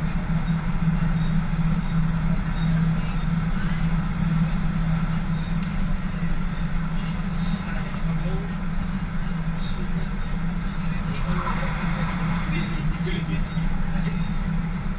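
A train hums steadily as it runs along the tracks.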